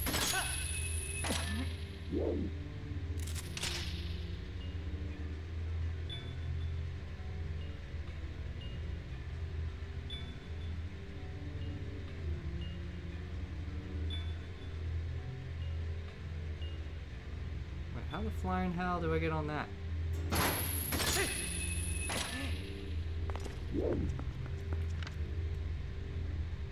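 Low, droning game music plays throughout.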